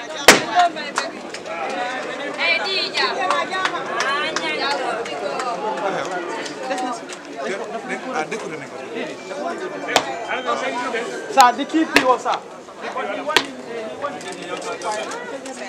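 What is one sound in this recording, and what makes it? A crowd of people talks and cheers outdoors.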